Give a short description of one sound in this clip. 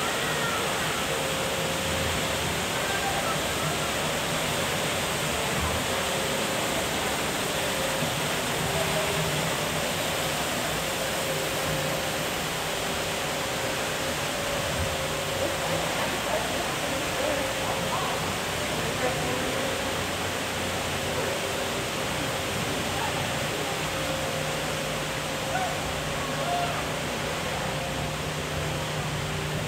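Machinery hums steadily.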